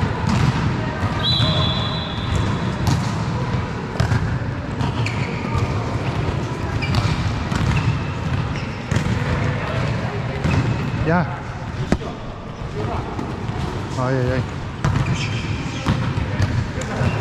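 A volleyball thumps off players' hands in a large echoing hall.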